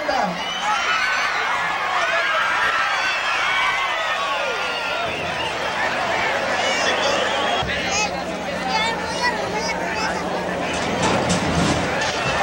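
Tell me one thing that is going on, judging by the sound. Men shout to one another nearby.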